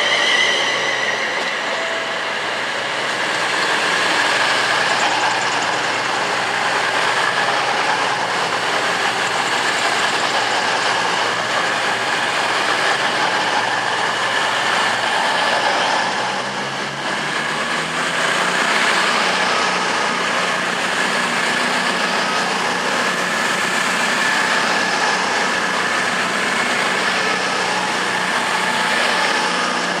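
A train's engine hums loudly as it passes.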